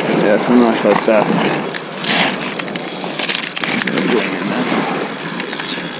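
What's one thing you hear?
A spinning reel is wound in.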